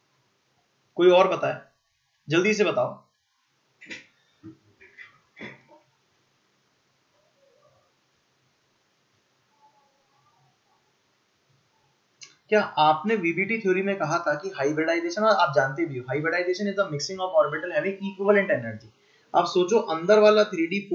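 A young man speaks close to a microphone, explaining with animation.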